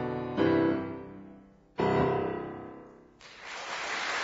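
A piano plays loud final chords that ring out in a large hall.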